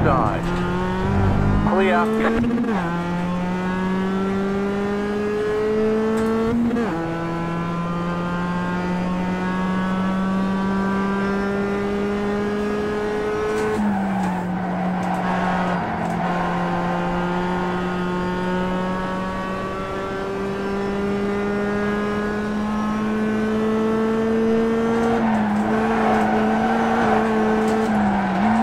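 A racing car engine roars steadily, its pitch climbing slowly and dropping sharply with each gear change.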